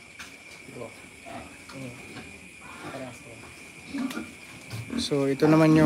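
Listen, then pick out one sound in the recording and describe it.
Pigs grunt softly.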